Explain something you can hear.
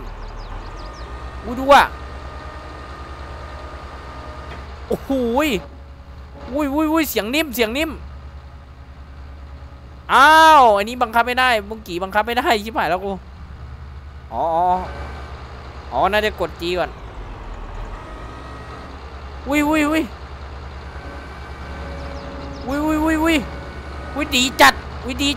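A heavy engine hums low and steady.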